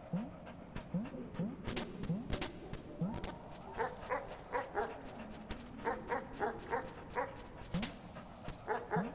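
Soft video game blips sound as a small animal jumps about.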